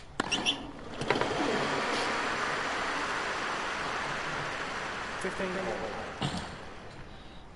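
A large crowd applauds and cheers, then fades.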